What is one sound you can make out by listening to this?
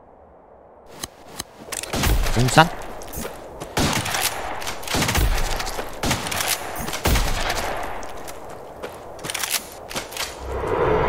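Game sword slashes and impacts thud repeatedly.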